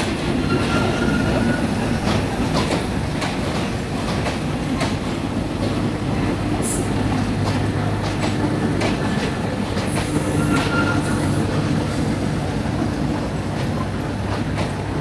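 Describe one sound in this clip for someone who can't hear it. A train rolls slowly past, its wheels clicking over the rail joints.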